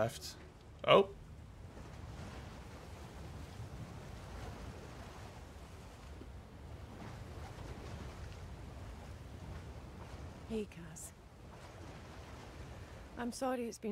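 Stormy sea waves roar steadily.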